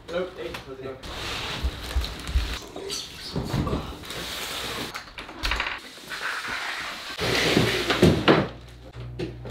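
A large cardboard box scrapes and slides across a wooden floor.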